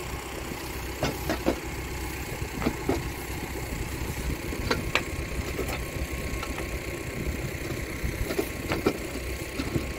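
Metal parts clink and knock as a pipe fitting is handled.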